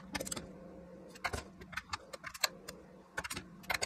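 Metal parts clink and knock against a metal plate.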